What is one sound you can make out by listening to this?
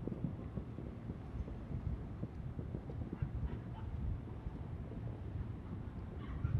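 Distant fireworks thud and rumble in low, muffled booms.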